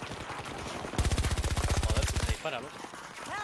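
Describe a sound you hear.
A rifle fires a fast burst of shots.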